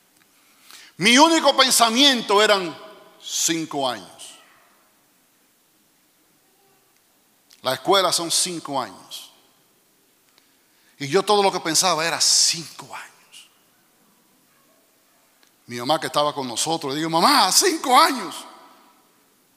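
A middle-aged man speaks with animation through a microphone, with long pauses between phrases.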